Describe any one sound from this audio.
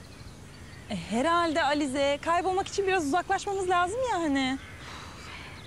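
A second young woman answers, close by.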